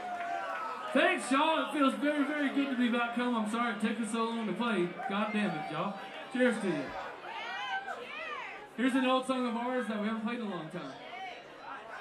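A man sings into a microphone during a live band performance.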